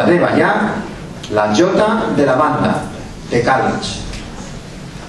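A performer speaks from a distant stage in a large echoing hall.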